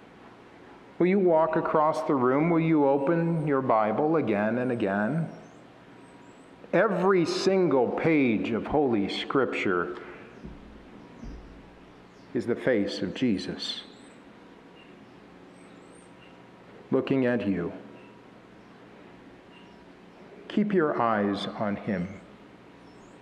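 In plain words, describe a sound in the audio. A man speaks calmly into a microphone in a reverberant hall, pausing between phrases.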